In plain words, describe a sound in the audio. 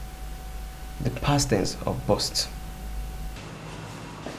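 A man answers calmly nearby.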